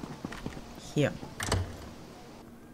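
A heavy wooden door opens.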